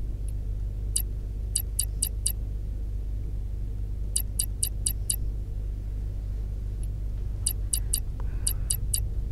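Short electronic clicks tick in quick bursts as a menu scrolls.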